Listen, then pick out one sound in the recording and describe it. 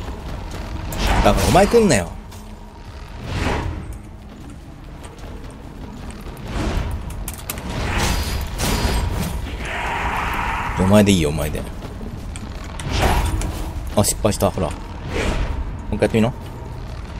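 Swords clash and slash in a fight.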